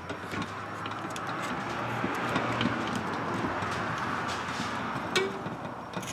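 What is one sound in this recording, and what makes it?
A metal tool rasps steadily.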